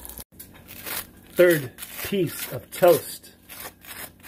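A knife scrapes butter across crisp toast.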